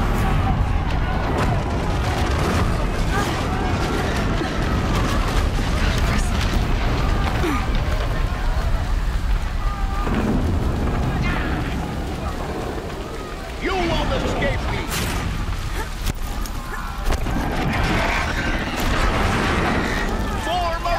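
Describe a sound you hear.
Fire crackles and roars all around.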